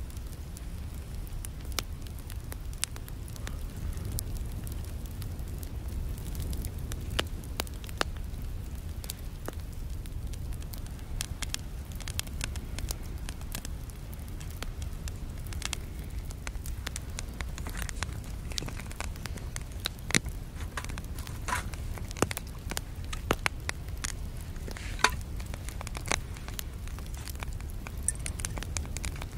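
A wood fire crackles and pops in a small stove.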